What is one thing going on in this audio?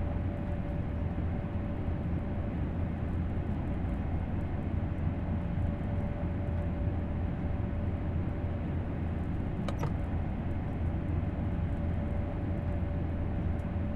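A fast electric train rumbles steadily along the rails with a low, even hum.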